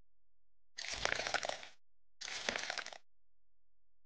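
Frosting squishes out of a piping bag.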